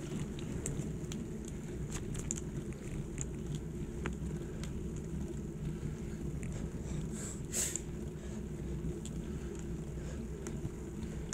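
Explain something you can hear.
Bicycle tyres hum on smooth tarmac.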